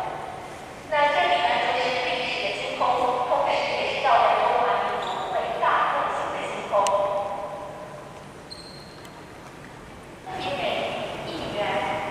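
A woman speaks calmly to a group.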